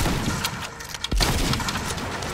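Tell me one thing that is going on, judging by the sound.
A gun fires a quick shot.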